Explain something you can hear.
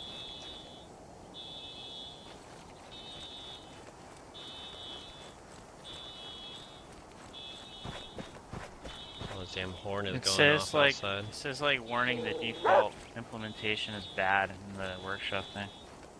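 Footsteps rustle quickly through grass and undergrowth.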